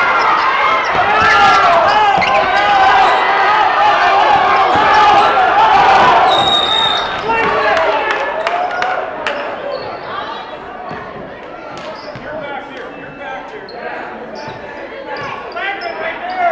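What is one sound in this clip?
A crowd cheers and shouts loudly in an echoing gym.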